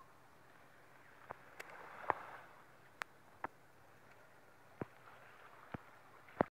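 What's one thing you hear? River water ripples and laps gently.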